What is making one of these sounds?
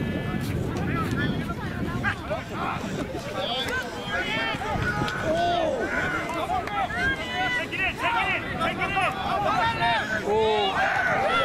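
Players' feet thud on the grass as they run.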